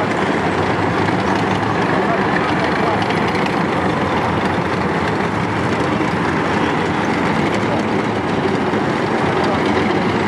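Diesel engines of tracked self-propelled howitzers rumble as they drive past.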